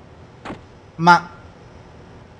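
A pistol fires a single shot.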